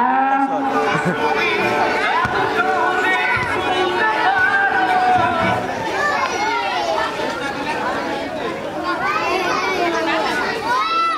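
A crowd of children and adults chatter and shout outdoors.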